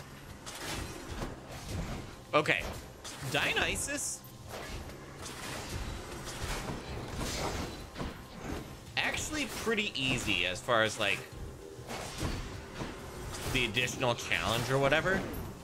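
Video game combat sounds of slashing strikes and magic blasts ring out.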